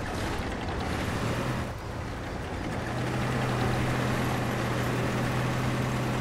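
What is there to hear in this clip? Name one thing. Tank tracks clatter over rough ground.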